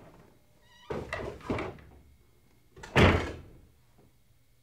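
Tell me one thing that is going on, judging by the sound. A door opens and closes with a thud.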